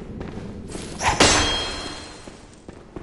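A blade strikes with a sharp, ringing hit.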